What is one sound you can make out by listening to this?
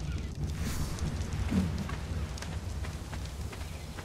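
Footsteps shuffle over sand and grass.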